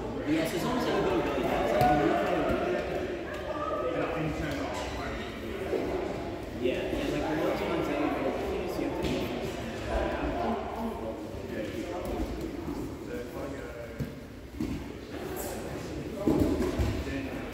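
Men talk and chat in a large echoing hall.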